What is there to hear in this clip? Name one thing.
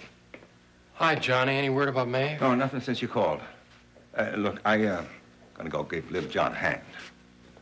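A younger man speaks.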